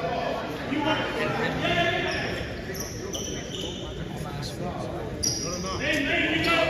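Young men and women talk and call out in a large echoing hall.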